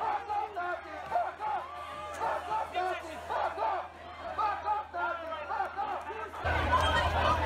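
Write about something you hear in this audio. A crowd of men and women shout and jeer loudly during a scuffle.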